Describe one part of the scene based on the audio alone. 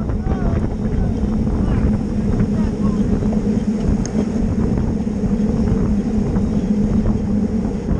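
Bicycle tyres whir steadily on smooth pavement.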